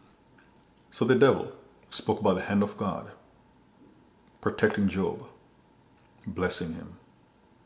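A man speaks slowly and seriously into a close microphone, in short phrases with pauses.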